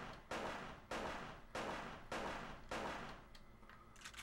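Heavy stomping blows land in a quick series.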